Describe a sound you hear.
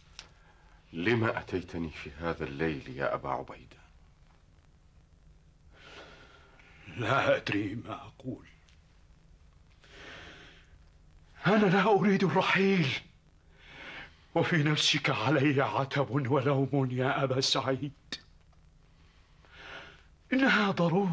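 A man speaks calmly and earnestly nearby.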